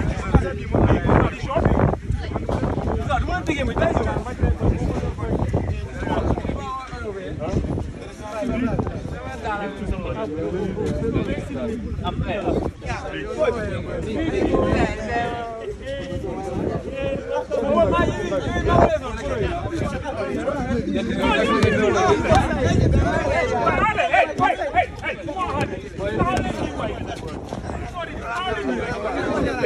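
A young man speaks loudly to the crowd.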